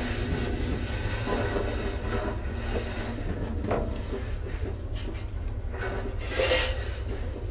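Electronic synthesizer music plays with a deep pulsing bass.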